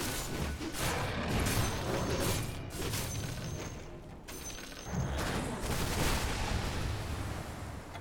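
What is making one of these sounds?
Game spells and weapons clash and crackle in a fight.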